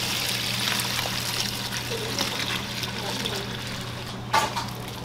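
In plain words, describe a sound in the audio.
Water pours and splashes into a metal trough.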